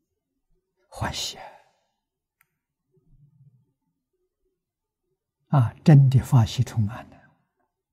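An elderly man speaks calmly and warmly into a close microphone.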